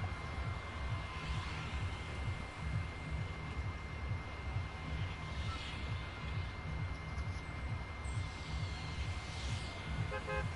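A low engine rumbles steadily.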